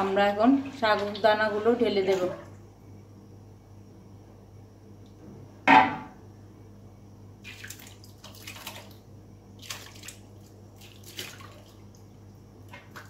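A wooden spoon stirs and scrapes inside a metal pot.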